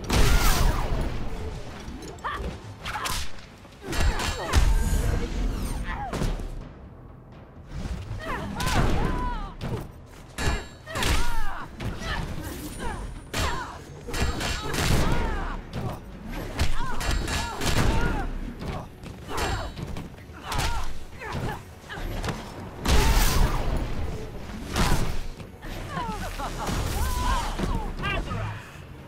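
Punches and kicks land with heavy, sharp thuds in quick bursts.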